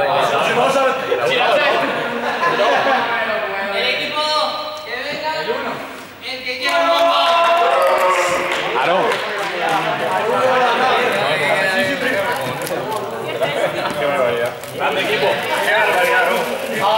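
Many young men chatter and call out at once in a large echoing hall.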